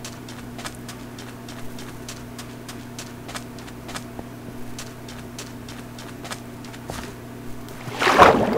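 Footsteps crunch on sand.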